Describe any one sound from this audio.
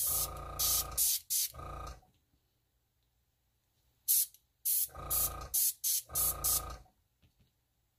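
An airbrush sprays in short hissing bursts.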